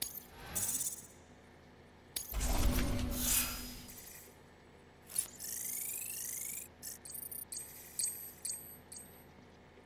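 Electronic menu sounds whoosh and chime as panels open.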